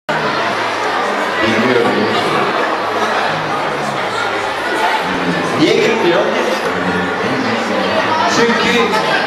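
A young woman speaks into a microphone through loudspeakers, echoing in a large hall.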